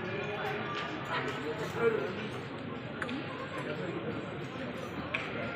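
A crowd of people chatter in a large echoing hall.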